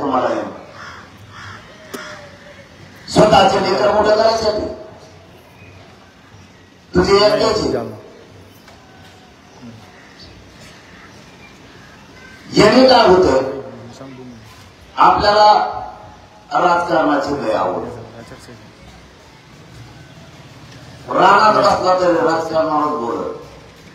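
A young man speaks loudly and forcefully through a microphone and loudspeakers, in bursts with pauses.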